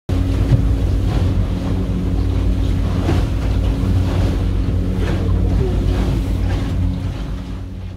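Waves splash hard against the boat's hull and window.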